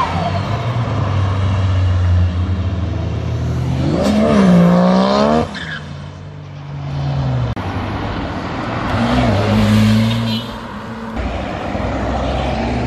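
A sports car engine rumbles loudly as it drives past.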